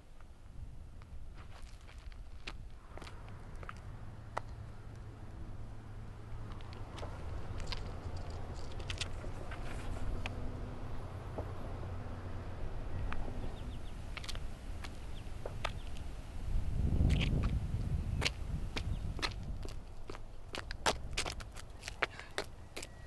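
Wind rumbles across an open outdoor space.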